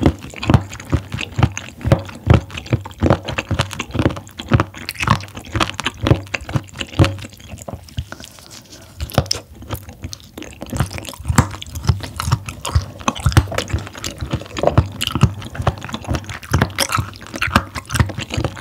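A young woman chews crunchy food wetly and close to a microphone.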